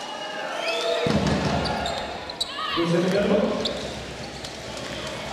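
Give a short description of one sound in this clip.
A crowd cheers and roars loudly.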